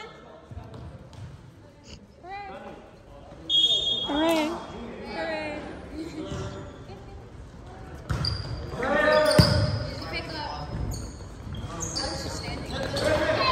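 Young men shout and call out to each other in a large echoing gym.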